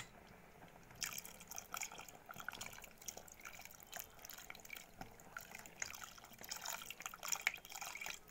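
Milk pours with a splash into bubbling liquid.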